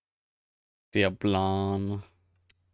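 A man speaks loudly and briefly, close to a microphone.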